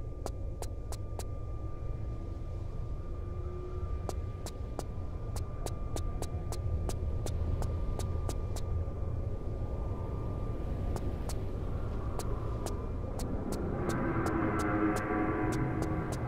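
Footsteps tap quickly and evenly on a hard floor, echoing in a narrow corridor.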